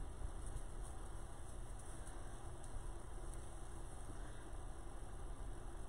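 Tinsel rustles and crinkles under a hand.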